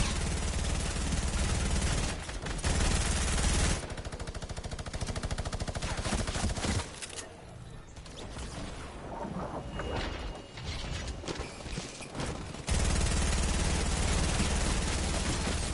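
Gunshots ring out in a video game.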